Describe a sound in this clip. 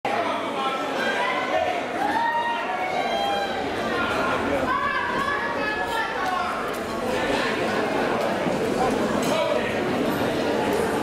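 A middle-aged man speaks into a microphone over a loudspeaker in a large echoing hall.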